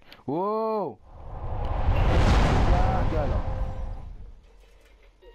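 An explosion booms with a loud roar.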